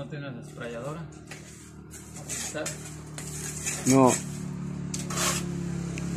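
A trowel scrapes wet plaster across a ceiling.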